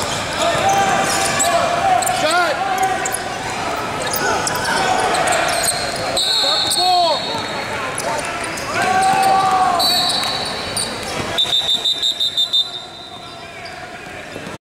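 Spectators chatter in a large echoing gym.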